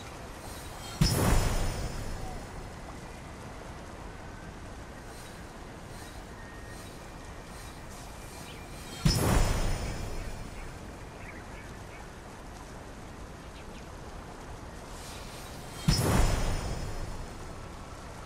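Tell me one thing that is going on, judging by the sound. A game interface plays a short swooshing sound.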